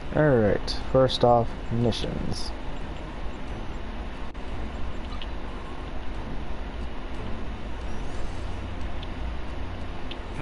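Short electronic blips sound as a game menu is navigated.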